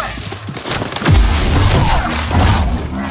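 A lightsaber hums and clashes against metal with crackling sparks.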